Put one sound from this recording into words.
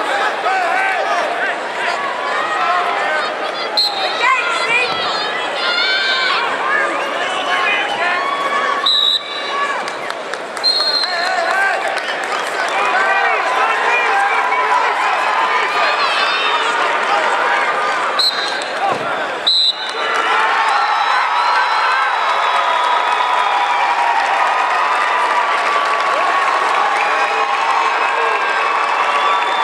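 A large crowd cheers and shouts throughout a big echoing arena.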